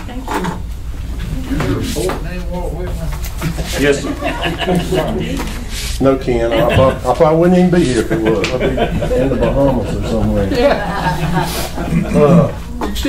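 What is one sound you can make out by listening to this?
A middle-aged man speaks into a microphone in a calm, steady voice.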